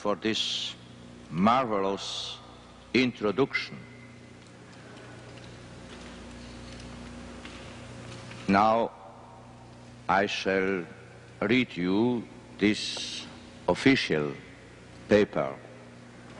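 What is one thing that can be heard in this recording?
An elderly man reads out slowly through a microphone in a large echoing hall.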